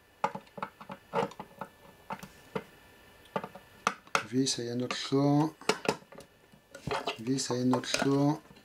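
A screwdriver clicks and scrapes against small metal parts close by.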